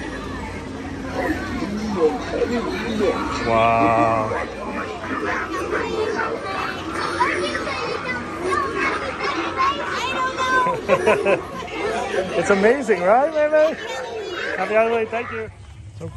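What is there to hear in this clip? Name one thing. Young children talk and call out excitedly close by.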